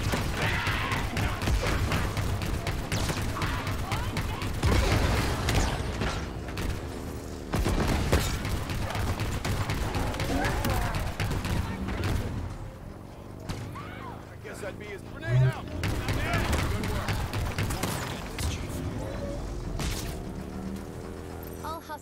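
Gunshots crack in bursts.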